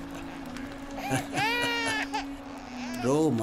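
A baby cries loudly up close.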